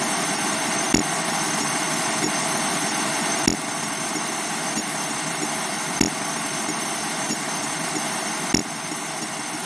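Feet splash into a muddy puddle again and again.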